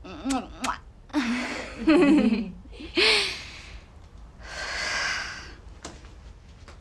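A young woman laughs heartily.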